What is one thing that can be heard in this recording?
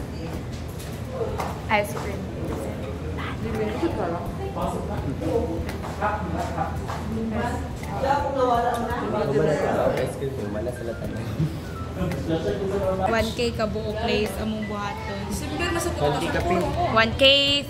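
A young woman talks close by with animation, off and on.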